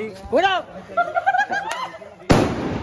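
A firecracker whistles as it shoots off.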